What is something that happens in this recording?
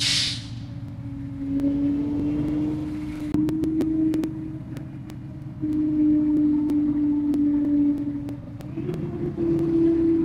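A bus engine hums and drones steadily.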